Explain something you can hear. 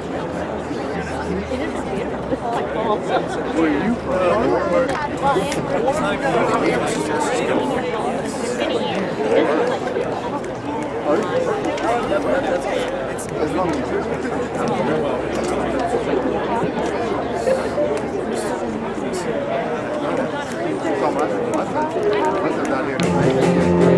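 A brass band plays a lively tune outdoors.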